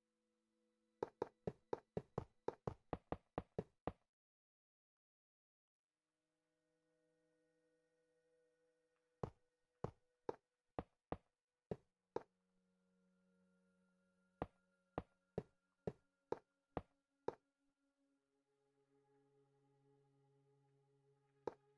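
Stone blocks are set down one after another with quick, sharp taps.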